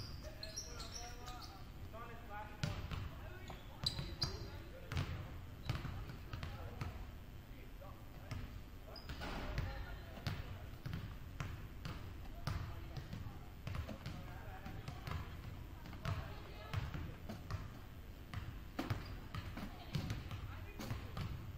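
Basketballs bounce on a wooden floor in a large echoing gym.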